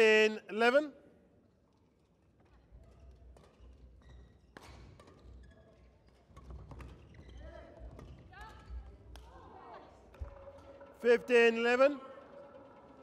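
Young women shout loudly.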